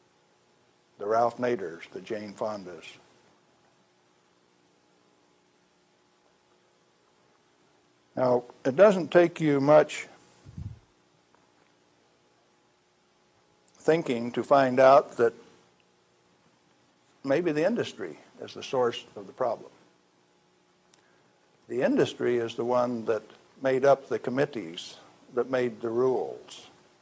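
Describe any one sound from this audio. A middle-aged man speaks calmly in short phrases with long pauses, heard through a microphone.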